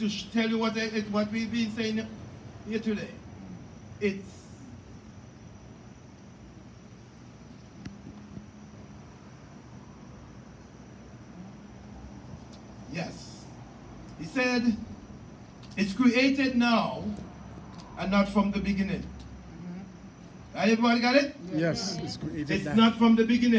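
A man preaches with animation through a microphone in an echoing hall, pausing between phrases.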